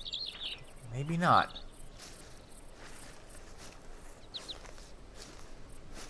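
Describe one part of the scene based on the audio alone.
Footsteps rustle softly through forest undergrowth.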